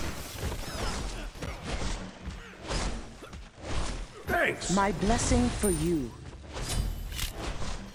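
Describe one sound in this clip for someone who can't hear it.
Magic spells crackle and whoosh in a game battle.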